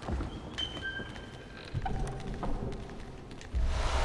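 A heavy chest lid creaks open.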